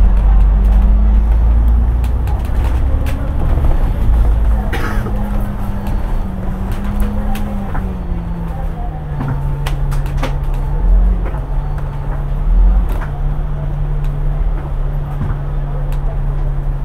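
A bus engine hums steadily, its pitch shifting as the bus drives along.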